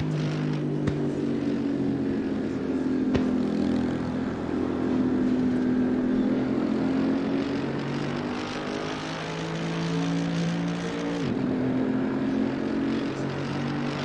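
A racing car engine roars steadily, its pitch rising and falling with speed.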